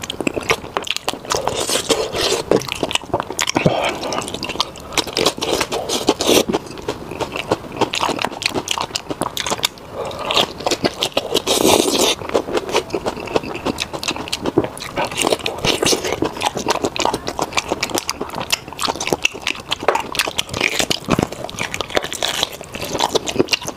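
A man chews and slurps food with his mouth close to a microphone.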